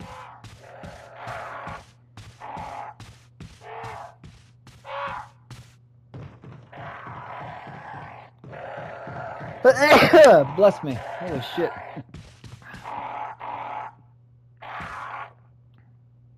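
Heavy boots thud on wooden floors and stairs.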